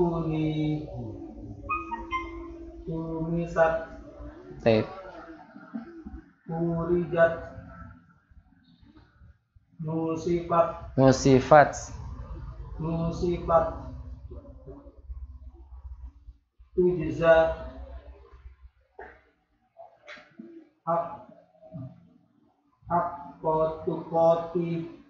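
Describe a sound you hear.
A man speaks calmly and slowly into a nearby microphone, with pauses.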